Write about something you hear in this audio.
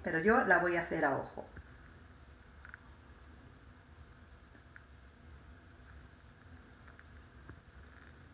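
A lemon is squeezed by hand.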